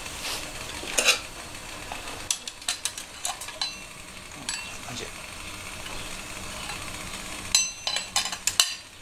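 A metal lid and pot clink as they are handled.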